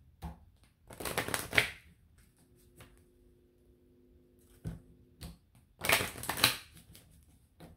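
Playing cards are shuffled with quick riffling flutters.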